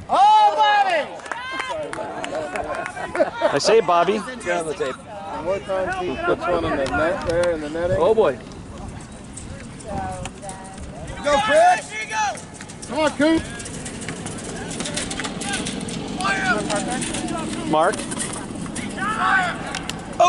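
Lacrosse players shout to each other across an open field.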